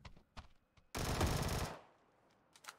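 Gunfire bursts out from a video game.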